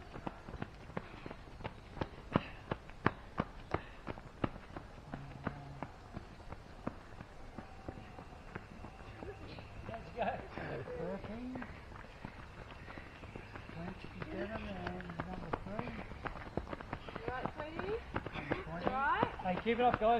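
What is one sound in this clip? Runners' footsteps crunch on a gravel track.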